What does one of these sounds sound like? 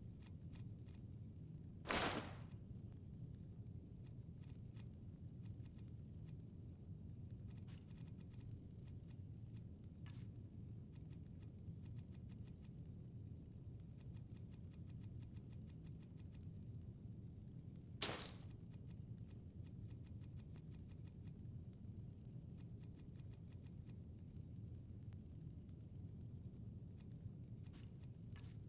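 Soft menu clicks tick quickly, again and again.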